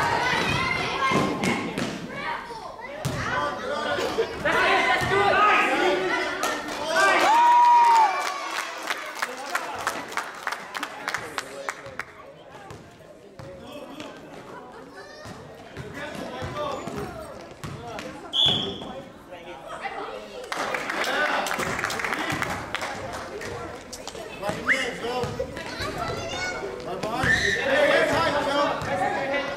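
A crowd of children and adults cheers and shouts in an echoing gym.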